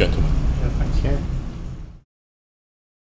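A middle-aged man laughs.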